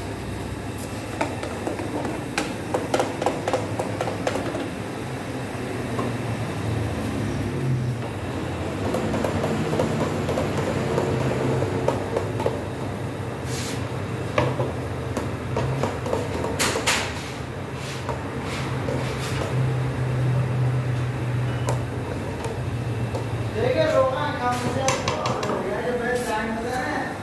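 A gas burner roars steadily.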